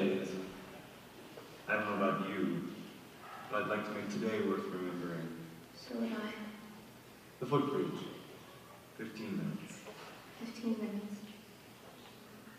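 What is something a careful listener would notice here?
A woman answers with feeling, heard from a distance in a large echoing hall.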